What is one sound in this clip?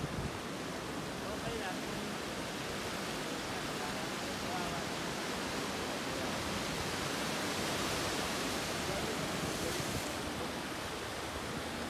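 Waves crash and churn against rocks.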